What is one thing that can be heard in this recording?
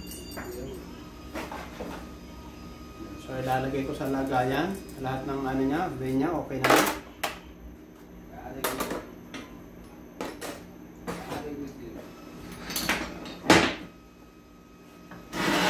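Metal parts clink and clatter as they are handled.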